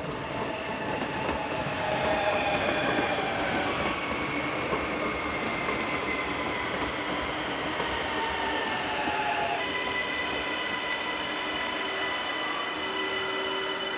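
An electric train rolls by close up with a steady rumble and whine.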